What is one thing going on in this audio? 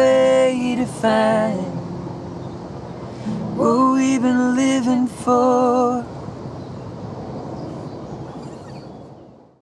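An acoustic guitar is strummed and fades out.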